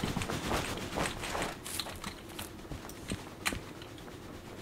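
A steam locomotive chuffs as it approaches.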